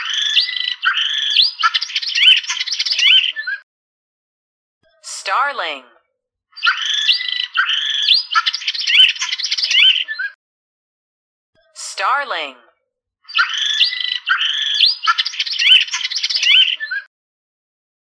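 A starling chatters and whistles in short repeated bursts.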